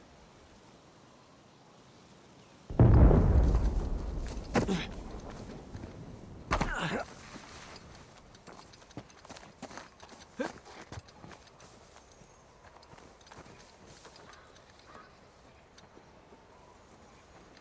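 Footsteps crunch on gravel and dry grass.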